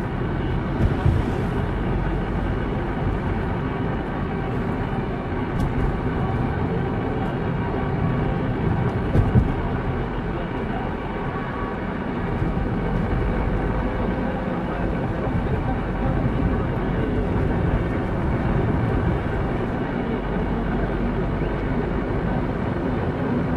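A car engine hums steadily from inside as the car drives along a road.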